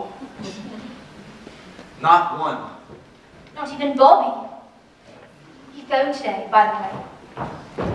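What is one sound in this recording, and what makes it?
A young woman speaks on a stage in a large hall.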